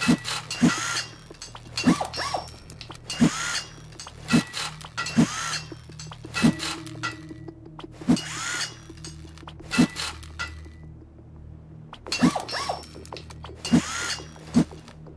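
A hammer strikes repeatedly with sharp, heavy thuds.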